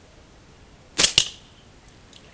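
A slingshot band snaps sharply as a stone is fired.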